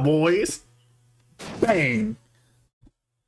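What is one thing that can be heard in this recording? A retro game sound effect plays twice, each with a quickly falling tone.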